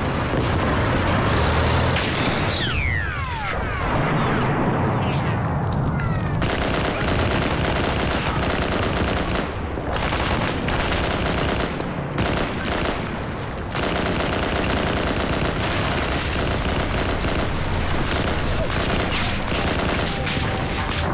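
Flames crackle and roar close by.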